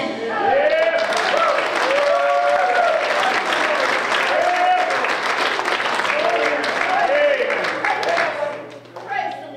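People clap along in rhythm.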